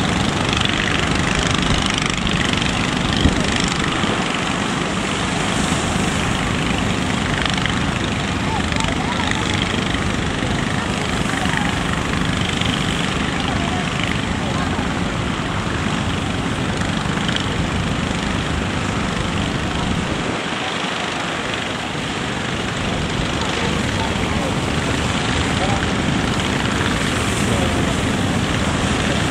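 Waves crash and surge steadily.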